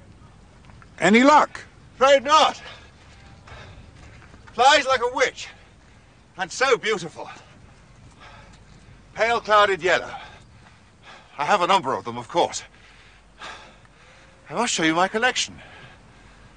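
A middle-aged man calls out and speaks with animation outdoors.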